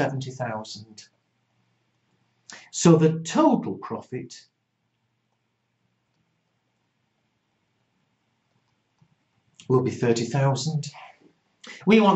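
An elderly man speaks calmly into a close microphone, pausing between phrases.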